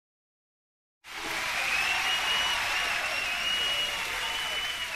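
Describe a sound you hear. Upbeat dance music plays.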